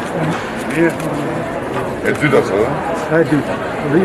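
An elderly man answers a man, close by.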